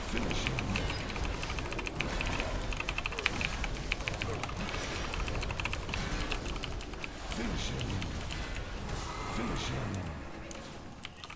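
Magic spells and weapon hits crackle and clash rapidly in a busy fight.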